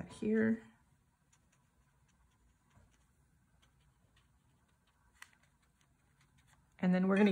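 A paintbrush dabs and strokes softly on paper.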